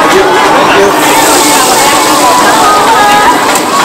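Hot oil sizzles loudly as food is fried.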